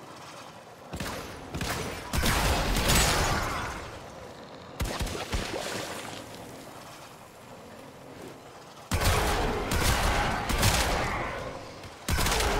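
A heavy weapon swings and strikes with loud whooshing blasts.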